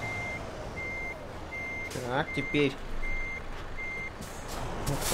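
A truck's reversing alarm beeps steadily and evenly.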